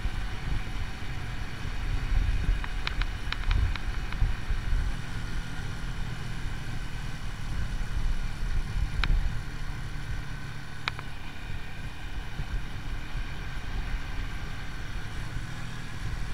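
Wind rumbles loudly against the microphone.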